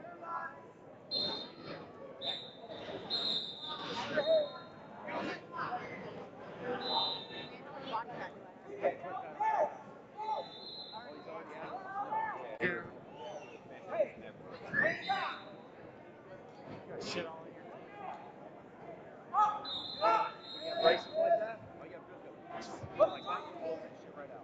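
A crowd of people chatters and shouts in a large echoing hall.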